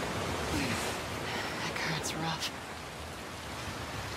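Water sloshes as a person wades through it.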